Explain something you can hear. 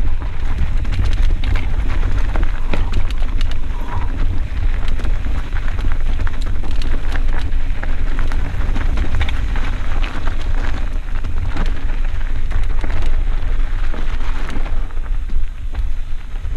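Wind rushes past a mountain biker riding downhill.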